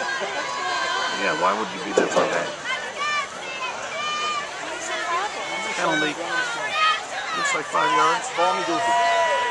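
A large outdoor crowd chatters and cheers loudly nearby.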